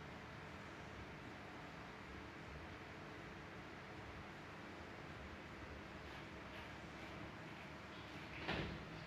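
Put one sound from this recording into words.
A young woman types quietly on a laptop keyboard.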